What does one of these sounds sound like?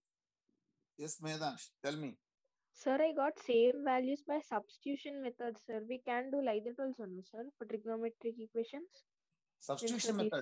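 A woman speaks calmly, explaining, heard through an online call.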